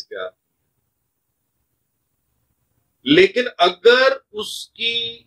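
A man speaks calmly and close by, pausing between phrases.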